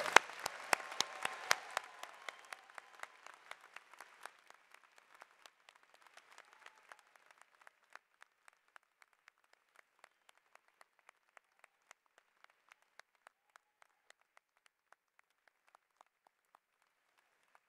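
A large crowd applauds in an echoing hall, the clapping thinning out and fading.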